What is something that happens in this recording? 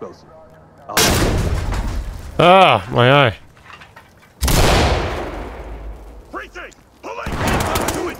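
A grenade bursts with a loud bang that rumbles away.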